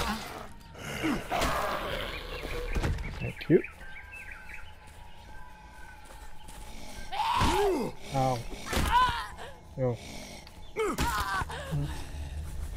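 A creature snarls and growls nearby.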